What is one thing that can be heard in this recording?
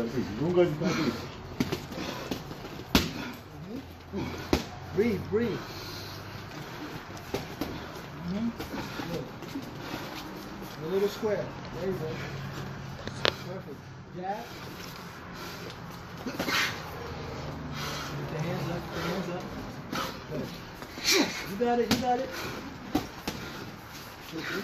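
Boxing gloves thud against each other in sharp, irregular blows.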